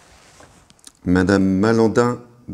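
A man announces something loudly and clearly nearby.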